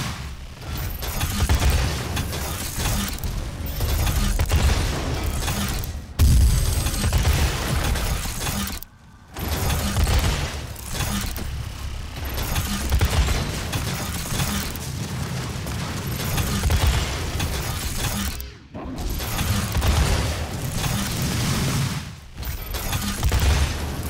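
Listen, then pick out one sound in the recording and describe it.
A heavy gun fires repeated loud, booming blasts.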